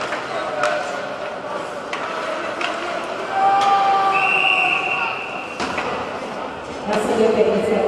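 Hockey sticks clack sharply against the puck.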